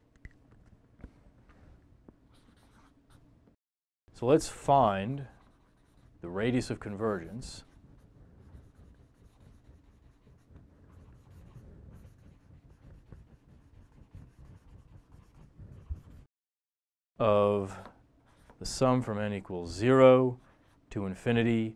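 A marker squeaks and scratches across a whiteboard.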